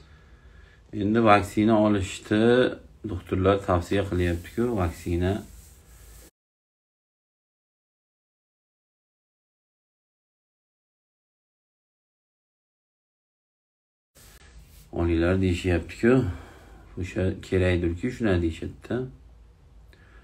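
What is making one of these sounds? A man speaks calmly and close up into a phone microphone.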